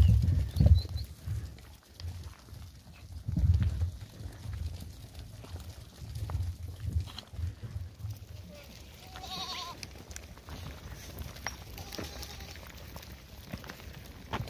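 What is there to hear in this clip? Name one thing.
Many hooves shuffle and patter on a dirt path.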